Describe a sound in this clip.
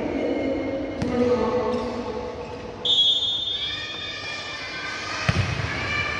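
A volleyball is struck with sharp slaps in an echoing hall.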